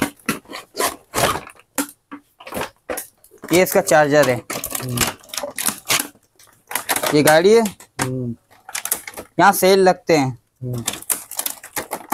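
Plastic toy parts clatter and click.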